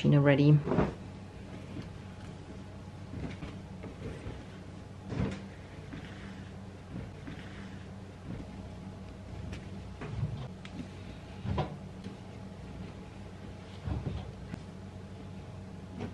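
Clothes rustle softly as they are handled.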